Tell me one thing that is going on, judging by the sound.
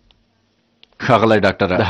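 A man speaks loudly and clearly.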